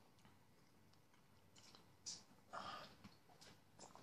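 A man sips from a cup.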